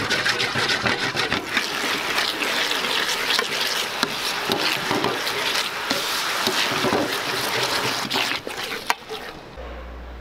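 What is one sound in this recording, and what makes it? A metal ladle scrapes against a pan.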